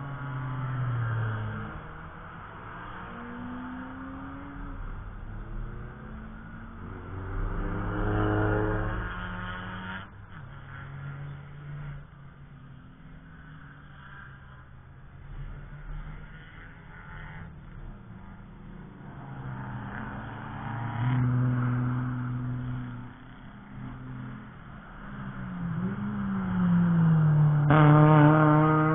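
Car engines roar loudly as cars race past, rising and falling in pitch.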